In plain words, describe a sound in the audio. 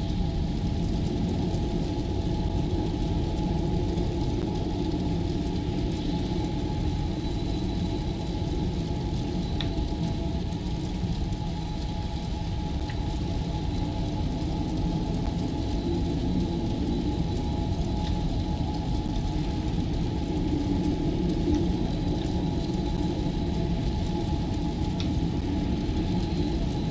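Flames crackle softly along a blade.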